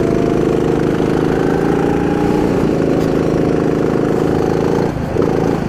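A small kart engine buzzes loudly up close, briefly dropping off and picking up again.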